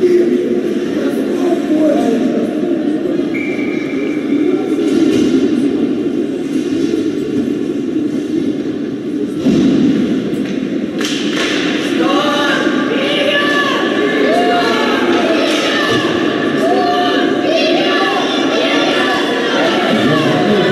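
A crowd of spectators chatters and shouts in a large echoing arena.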